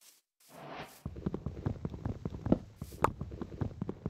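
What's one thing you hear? A melon block is struck again and again with rapid thuds.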